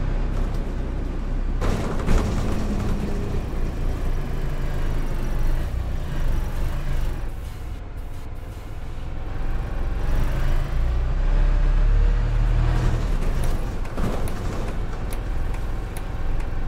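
A bus engine hums and rumbles steadily as the bus drives along.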